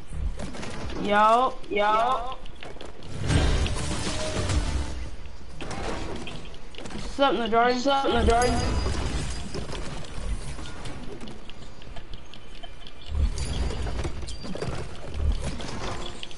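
Game effects clatter and thud as figures fight.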